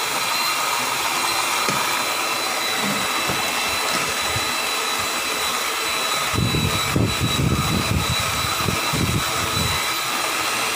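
An electric hand mixer whirs steadily, beating a mixture in a metal bowl.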